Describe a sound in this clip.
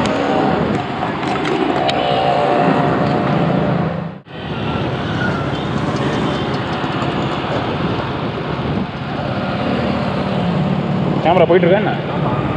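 Traffic roars along a busy road outdoors.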